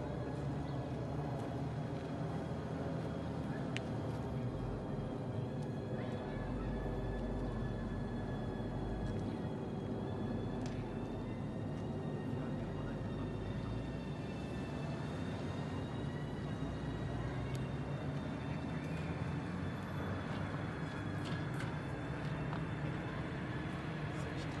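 A tram hums and rumbles as it slowly approaches along the rails.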